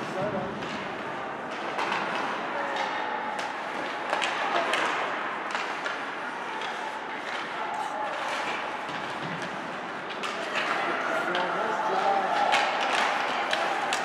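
Hockey sticks clack against a puck in an echoing rink.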